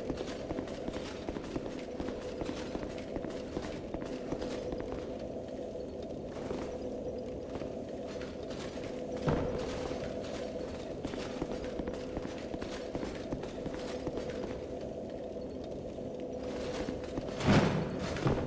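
Heavy armoured footsteps clatter quickly on stone.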